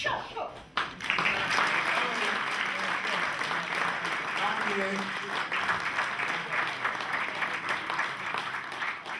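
A crowd applauds steadily in a hall.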